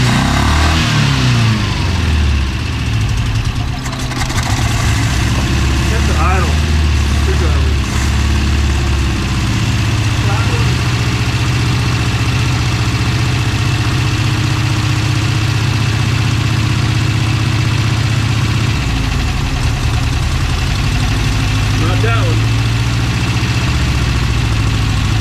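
A car engine idles roughly close by, its beat changing now and then.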